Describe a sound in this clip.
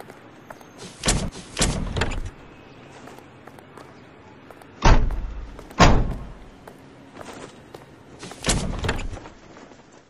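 Metal doors slam shut.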